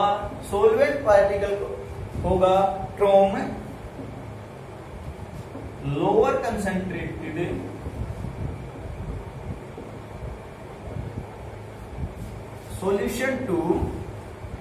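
A young man speaks calmly, explaining at a steady pace.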